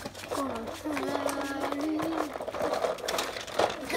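A plastic toy car rolls and scrapes across carpet.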